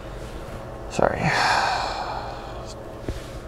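A man sighs heavily.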